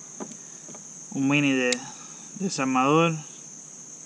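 A folding tool on a pocket knife clicks open.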